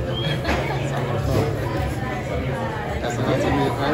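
A knife scrapes and cuts through meat on a wooden board.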